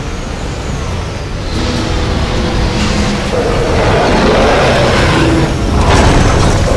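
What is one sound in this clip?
A huge machine creature rumbles and groans nearby.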